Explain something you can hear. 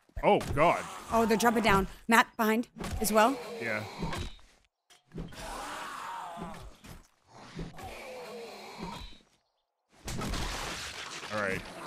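A wooden club thuds against a body.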